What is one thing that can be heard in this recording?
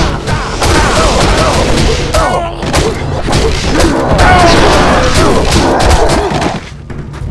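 Weapons clash and strike repeatedly in a fast fight.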